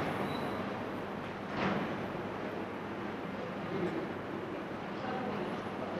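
A man talks calmly close to the microphone.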